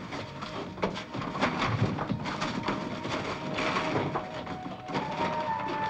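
A man rummages and knocks about inside a cupboard.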